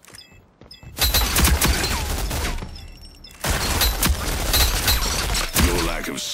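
An automatic rifle fires loud rapid bursts.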